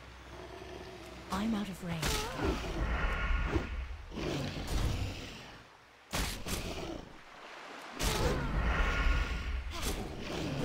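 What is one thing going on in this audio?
A game character fights with sword strikes and spell effects.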